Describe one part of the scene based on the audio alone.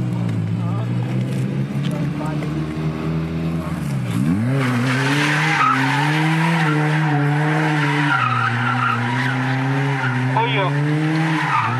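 A car engine roars and revs hard.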